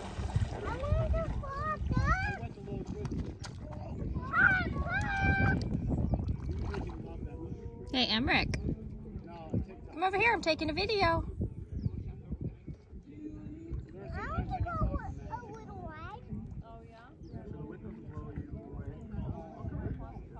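Water splashes as a child wades in the shallows.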